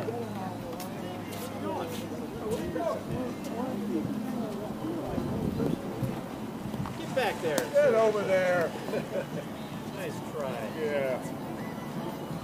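Men talk and call out to each other nearby.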